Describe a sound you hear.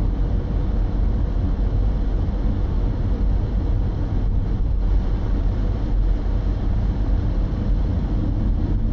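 Tyres roll steadily on a paved road.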